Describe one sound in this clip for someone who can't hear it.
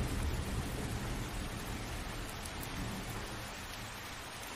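Thunder rumbles low in the distance.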